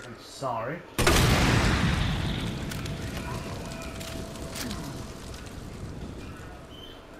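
An explosion bursts with a loud roar that slowly dies away.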